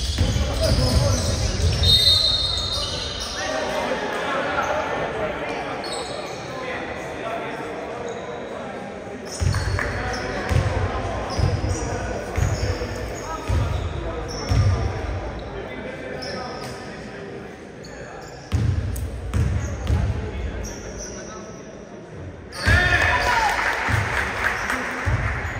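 Men shout calls to each other across an echoing hall.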